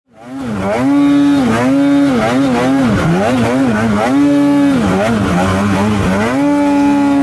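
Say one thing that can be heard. A snowmobile engine roars and revs up and down close by.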